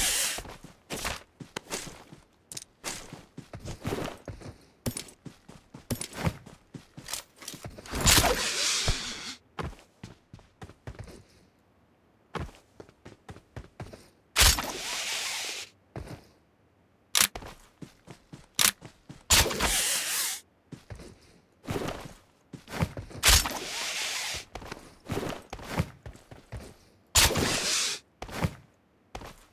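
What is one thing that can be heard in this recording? Footsteps run quickly through grass and across hard surfaces.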